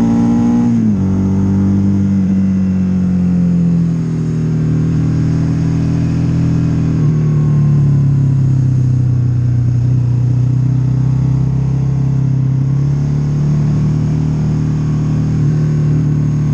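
A motorcycle engine drones steadily, dropping in pitch as the rider shifts gear near the start, then rising and falling with the throttle.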